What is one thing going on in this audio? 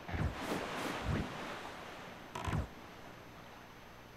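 Water splashes against a small boat.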